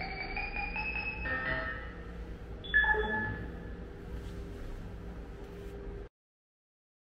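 A game machine plays bright electronic chimes and jingles.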